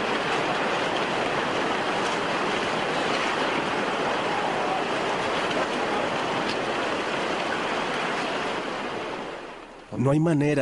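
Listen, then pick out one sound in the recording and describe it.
A torrent of floodwater roars and rushes loudly.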